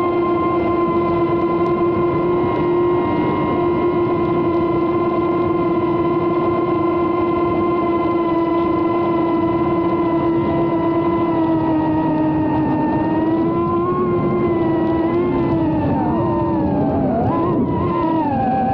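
Drone motors whine steadily, then waver up and down in pitch.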